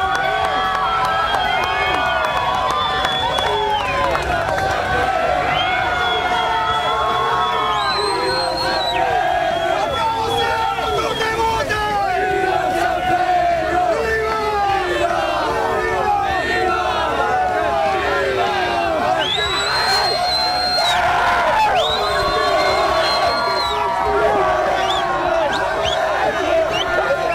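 A crowd of men chants and sings together.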